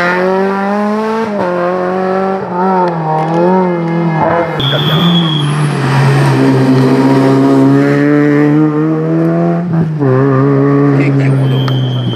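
A rally car engine roars and revs hard, its pitch rising and dropping with gear changes.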